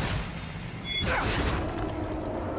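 A loud metallic explosion bursts with crackling sparks.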